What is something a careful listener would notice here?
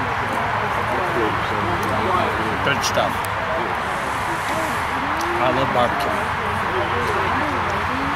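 A man talks calmly close by, outdoors.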